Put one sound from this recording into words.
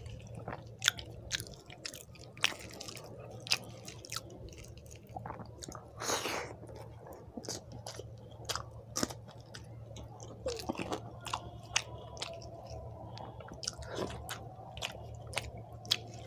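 A man chews food wetly and smacks his lips close to a microphone.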